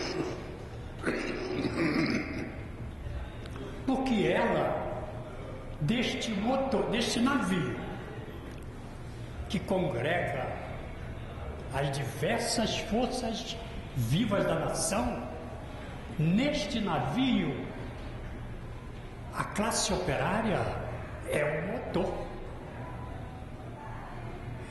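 An elderly man speaks emphatically through a microphone.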